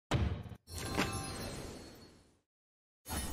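A shimmering magical whoosh sweeps and rings out, then fades.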